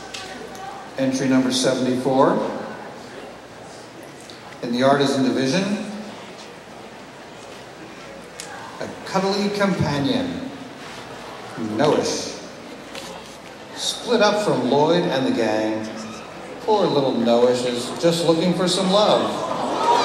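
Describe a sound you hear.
An older man speaks slowly through a microphone, with long pauses.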